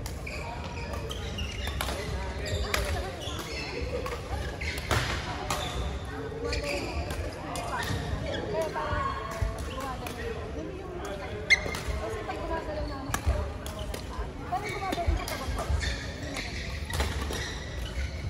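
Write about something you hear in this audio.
Shuttlecocks are struck sharply with rackets, over and over.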